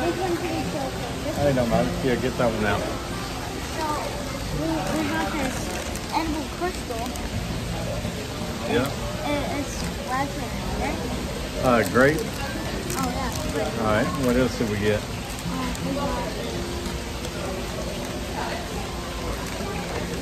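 Plastic wrapping crinkles as a boy handles it.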